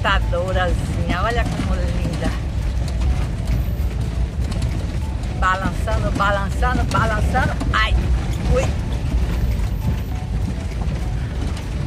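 Car tyres rumble steadily over cobblestones.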